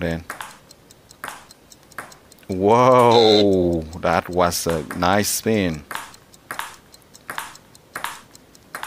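A table tennis ball clicks back and forth, bouncing off paddles and a table.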